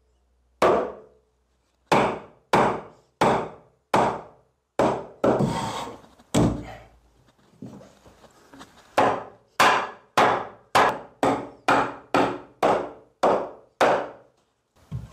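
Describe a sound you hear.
A hammer taps wooden floorboards into place.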